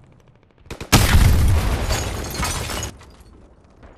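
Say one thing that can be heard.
Gunfire and explosions roar loudly and echo.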